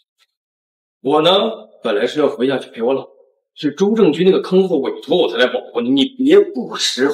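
A man speaks close by, with animation.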